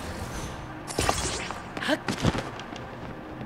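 Sharp clicks and chimes sound in quick bursts.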